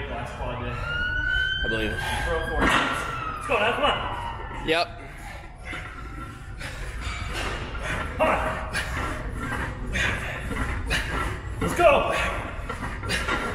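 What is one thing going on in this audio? A man grunts and strains loudly with effort.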